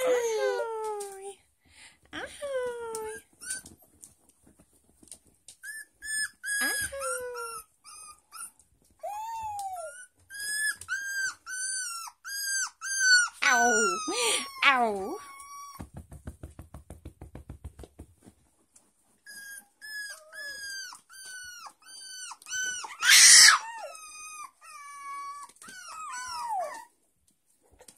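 A puppy whines and yelps in high, squeaky cries.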